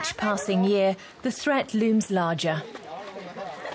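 An elderly woman speaks loudly and with animation close by.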